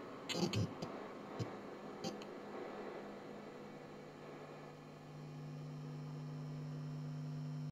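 An electric guitar plays close by.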